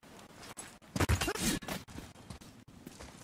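A man fights and strikes an enemy with heavy blows.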